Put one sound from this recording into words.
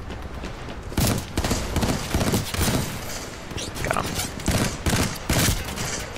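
Gunfire rattles in short, loud bursts.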